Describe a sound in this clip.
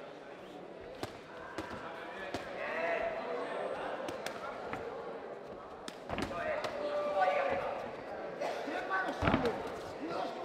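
Gloves thud sharply as punches land.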